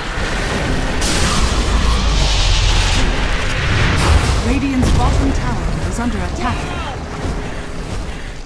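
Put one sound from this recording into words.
A magic spell crackles and booms like lightning.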